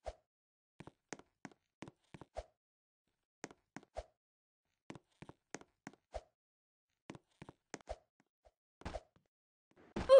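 Quick footsteps patter steadily on a hard surface.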